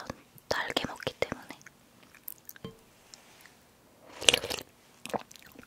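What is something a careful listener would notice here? A young woman slurps noodles close to a microphone.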